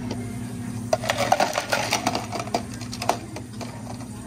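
Ice cubes clatter loudly into a plastic cup.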